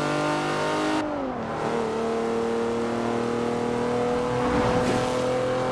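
A car engine's pitch drops briefly at gear changes.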